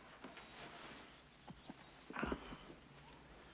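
A man sits down on a cushioned couch with a soft thump.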